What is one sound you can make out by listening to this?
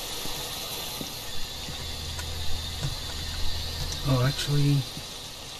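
A radio hisses with static while being tuned.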